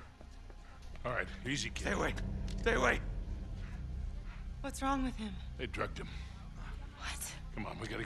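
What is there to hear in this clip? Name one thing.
An older man speaks urgently.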